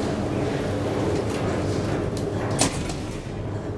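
Elevator doors slide shut with a thud.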